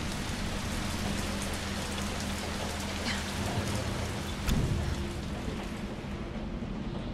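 Heavy rain pours down outside a window.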